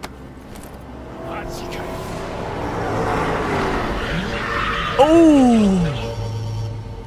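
Tyres screech as a car skids to a stop.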